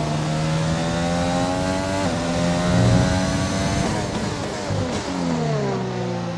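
A racing car engine screams at high revs, rising through the gears and dropping sharply as it shifts down for a corner.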